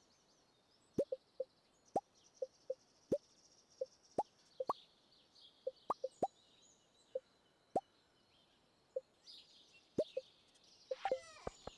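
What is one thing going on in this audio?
Short soft pops sound as game items are moved.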